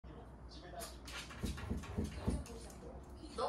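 A small dog scratches and paws at a door.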